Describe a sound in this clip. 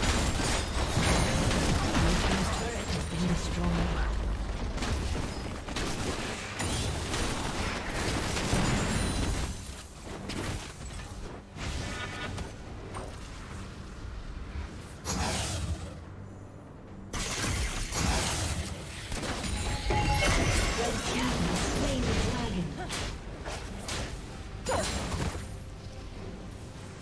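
Game spell effects and attacks burst and clash in quick succession.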